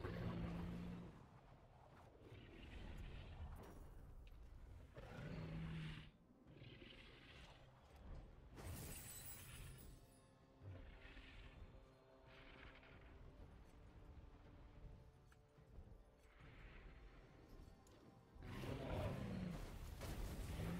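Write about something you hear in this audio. Wind rushes past as a creature glides through the air.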